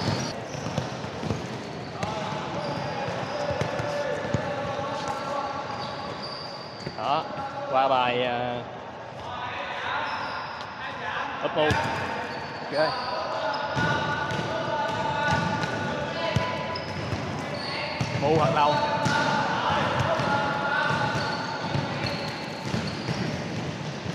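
A ball is kicked with sharp thuds that echo around a large hall.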